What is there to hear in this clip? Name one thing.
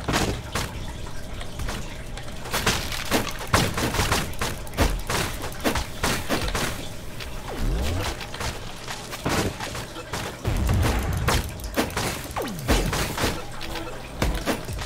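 Game weapons strike and explode in quick, repeated bursts.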